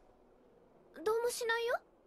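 A young woman answers briskly.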